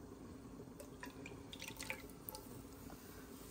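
Milk pours into a hot pan.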